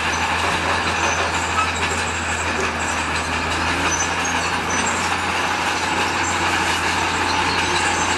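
Rocks scrape and grind under a bulldozer's blade.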